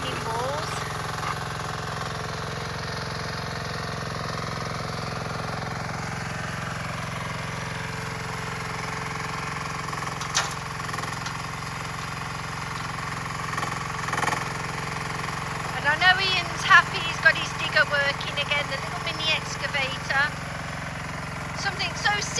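A small digger's engine hums steadily.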